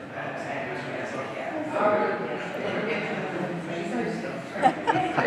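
Several adults talk nearby outdoors.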